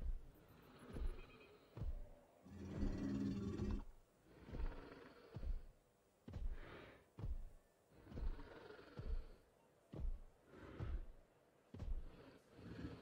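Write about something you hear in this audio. Heavy footsteps thud on the ground at a steady pace.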